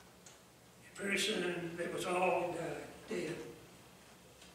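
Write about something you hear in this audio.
An elderly man speaks slowly and calmly through a microphone.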